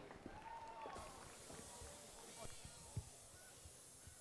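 A smoke machine hisses steadily.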